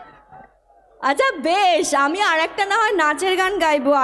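A woman sings loudly into a microphone.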